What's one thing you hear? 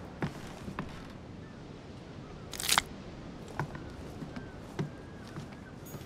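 Footsteps knock on a wooden floor indoors.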